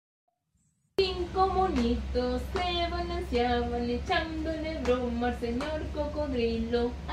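A young woman sings close by in a clear voice.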